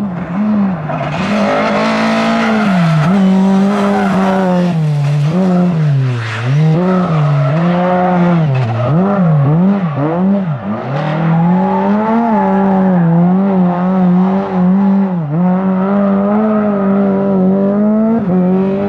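A car engine roars and revs up and down repeatedly.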